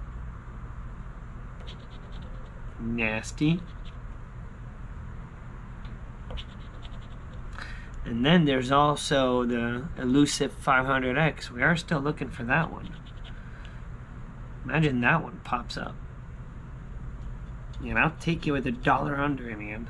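A coin scratches across a paper ticket.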